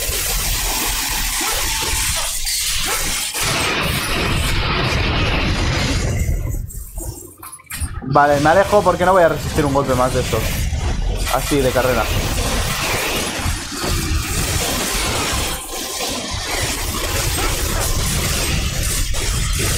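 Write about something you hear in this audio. Sword blades slash and clang in a fast fight.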